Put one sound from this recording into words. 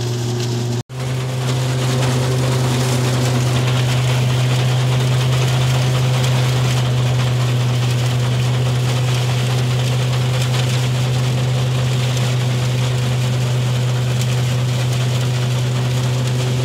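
Peanuts rattle and patter as they pour onto a metal tray.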